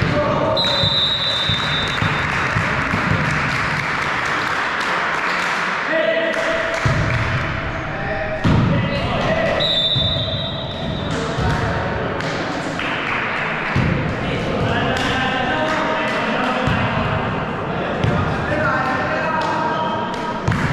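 Young players shout and call out to each other across the gym.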